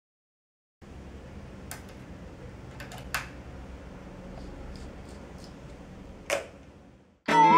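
An electric guitar amplifier hums softly.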